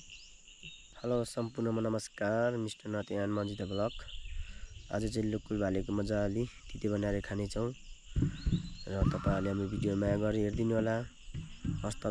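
A young man speaks calmly and close up.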